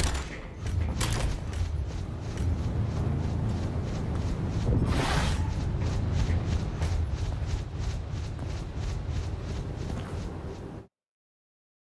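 Quick footsteps run across a hard metal floor.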